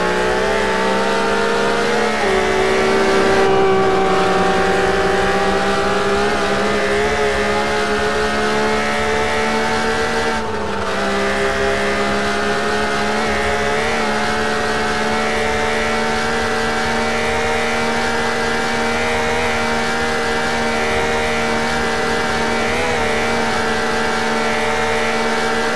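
A car engine roars at high revs, dropping briefly with each gear shift.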